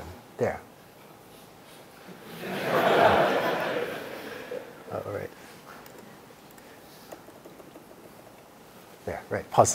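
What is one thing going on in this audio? A man speaks calmly through a microphone in a large hall, with long pauses.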